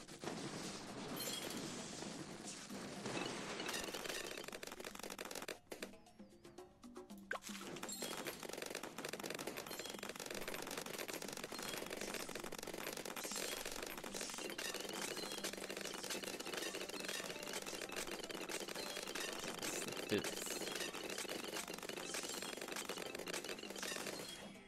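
Rapid popping and crackling game effects go on without pause.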